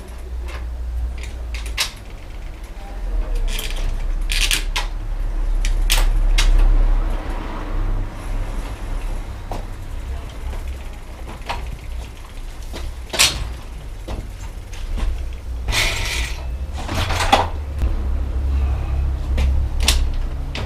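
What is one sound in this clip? Metal parts click and knock.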